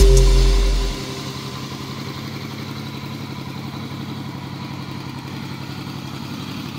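A motorcycle engine idles with a steady, throbbing rumble.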